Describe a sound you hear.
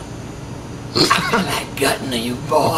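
A young man laughs loudly and wildly up close.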